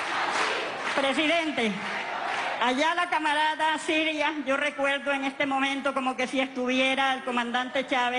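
An elderly woman speaks loudly into a microphone, heard through loudspeakers.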